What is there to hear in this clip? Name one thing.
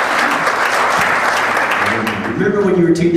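A crowd claps and cheers in a large echoing room.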